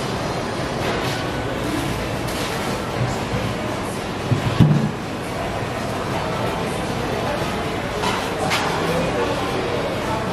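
A crowd of men and women chatters steadily nearby.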